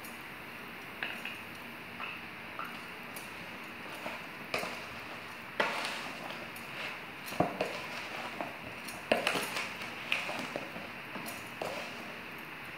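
A plastic spoon knocks and scrapes against a plastic tub while stirring chopped mango.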